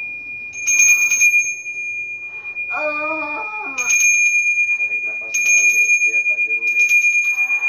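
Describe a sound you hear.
A hand bell rings in rapid bursts, leaving a steady ringing tone between them.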